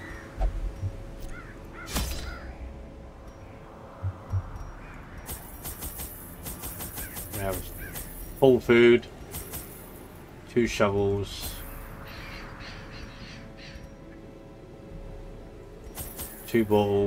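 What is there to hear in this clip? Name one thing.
Coins clink in a short jingle, again and again.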